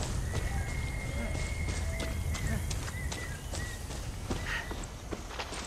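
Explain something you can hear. Footsteps crunch over dirt and grass.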